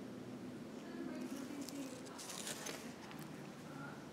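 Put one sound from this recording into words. Fur brushes and rustles right against the microphone.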